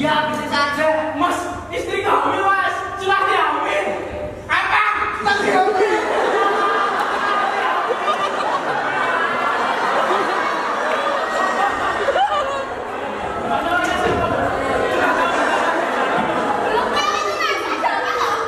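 Young actors speak and call out loudly on a stage, in an echoing hall.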